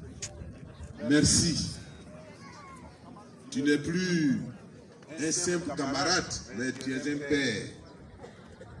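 A man speaks through a microphone and loudspeakers outdoors, in phrases with pauses.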